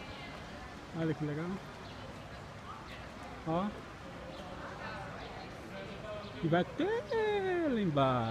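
A man speaks casually close by.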